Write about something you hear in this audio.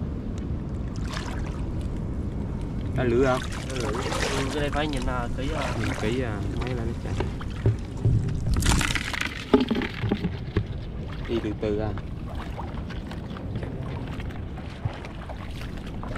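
Shallow water splashes underfoot.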